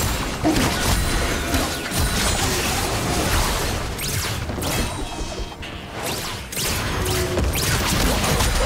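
Game swords clash and strike.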